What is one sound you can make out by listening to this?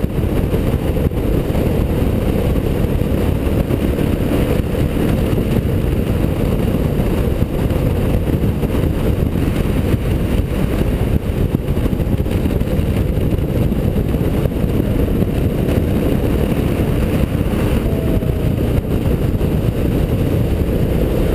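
Wind roars against the rider at speed.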